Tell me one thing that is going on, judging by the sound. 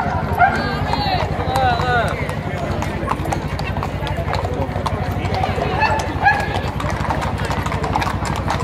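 Horseshoes clop on stone pavement.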